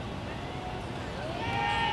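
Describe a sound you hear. A young man speaks nearby outdoors.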